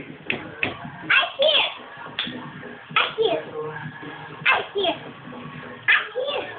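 A young girl sings loudly close by.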